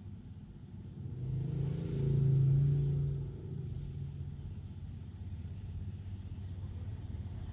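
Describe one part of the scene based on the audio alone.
A bus rumbles past with a deep engine roar.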